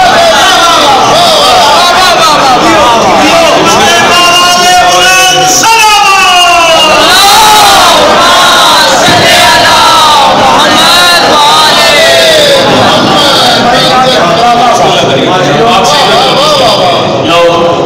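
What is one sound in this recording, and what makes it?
A man chants melodically into a microphone, heard through loudspeakers in an echoing hall.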